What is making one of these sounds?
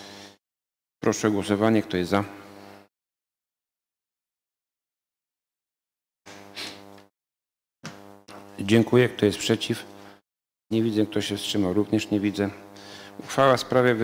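A man speaks calmly through a microphone, in short bursts.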